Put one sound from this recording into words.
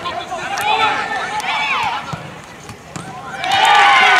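A football is kicked hard on an outdoor pitch.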